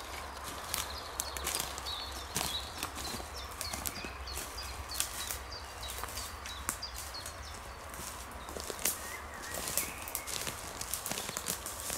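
Footsteps crunch through dry leaves and twigs on the forest floor.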